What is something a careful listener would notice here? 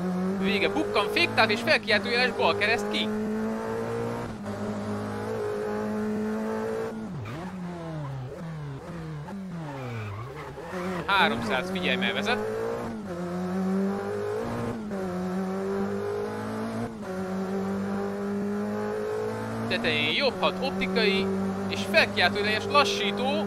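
Tyres squeal in bursts on tarmac.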